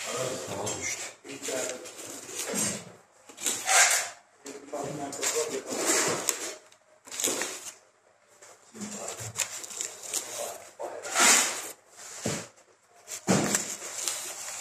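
A knife scrapes and cuts through meat and bone.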